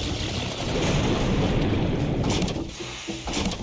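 Molten metal pours with a deep, rushing roar.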